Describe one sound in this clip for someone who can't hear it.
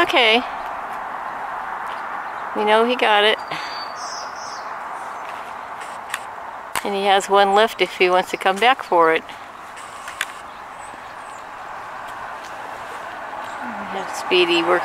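A bird calls nearby in short, repeated bursts of song.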